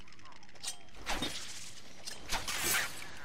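Batarangs whoosh through the air and clatter.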